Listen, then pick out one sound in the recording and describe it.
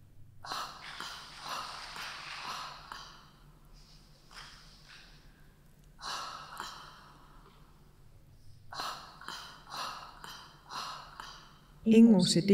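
A woman breathes loudly and heavily in short bursts.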